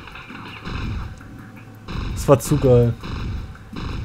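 Explosions boom and rumble in a game battle.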